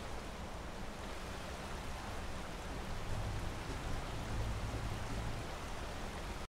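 A campfire crackles nearby.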